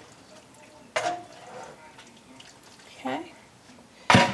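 A spoon scrapes food in a dish.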